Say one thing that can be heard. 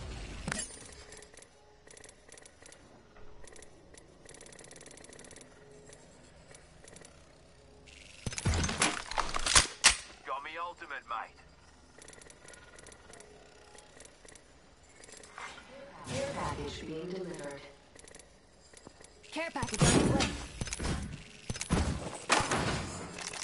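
Short interface clicks and chimes sound as items are picked up.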